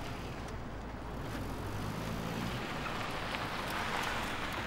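Cars drive up along a street, their engines growing louder.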